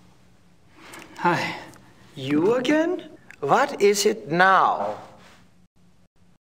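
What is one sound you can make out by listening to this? A man speaks calmly and politely nearby.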